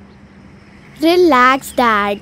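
A young girl speaks brightly close by.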